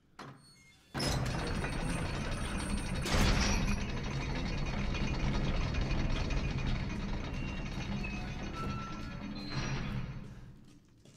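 Heavy gears grind and rumble loudly.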